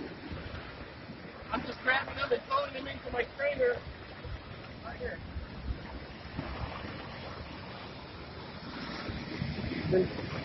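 Water rushes and splashes over rocks.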